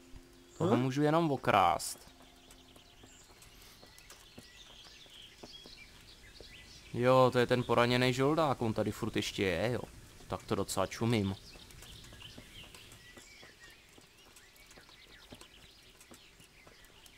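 Footsteps tread on a dirt path.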